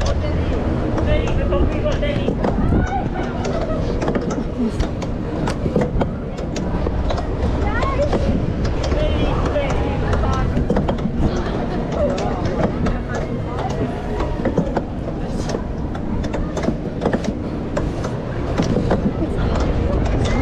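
A crowd of people chatters and calls out in the distance.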